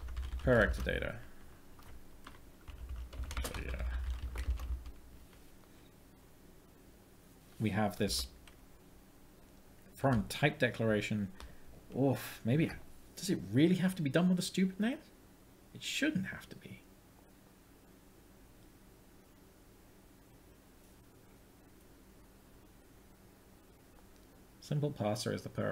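A man speaks calmly and thoughtfully, close to a microphone, in short bursts with pauses.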